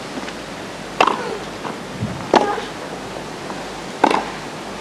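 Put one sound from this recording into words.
Tennis rackets strike a ball with sharp, hollow pops, back and forth.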